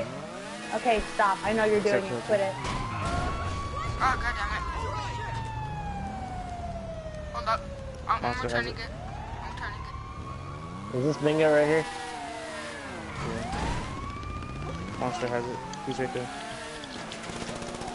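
A motorbike engine revs and whines, rising and falling in pitch.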